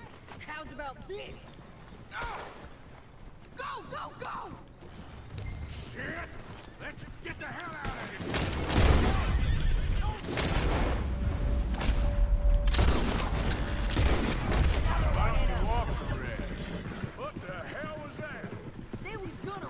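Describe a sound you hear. A horse-drawn wagon rattles along a dirt track.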